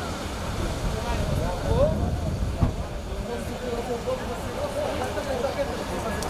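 Men and women talk with one another nearby outdoors.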